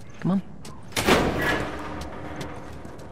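A door swings open with a creak.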